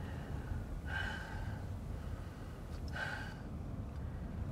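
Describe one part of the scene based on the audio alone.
An elderly woman speaks quietly and haltingly nearby.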